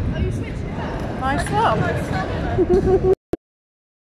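A young person laughs close by.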